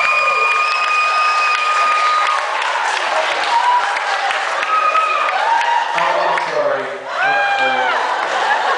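A crowd cheers and shrieks loudly in a large hall.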